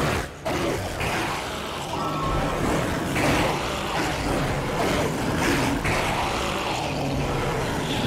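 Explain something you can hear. Steam hisses loudly from a burst pipe.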